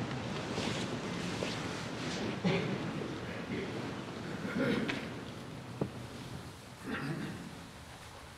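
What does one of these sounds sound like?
A large crowd murmurs and shuffles quietly in a big room.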